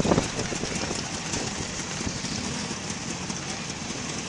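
A motorcycle engine rumbles nearby.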